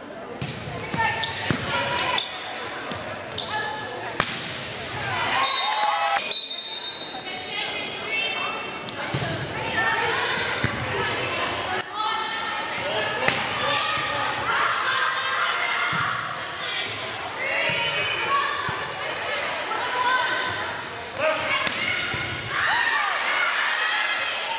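Teenage girls shout and call out during play.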